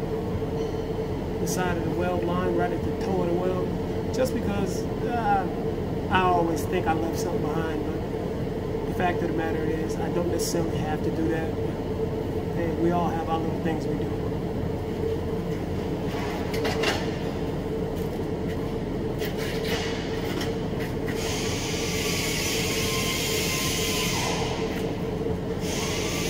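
A fume extractor hums steadily.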